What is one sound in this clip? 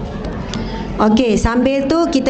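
A young woman speaks into a microphone, heard through loudspeakers in an echoing hall.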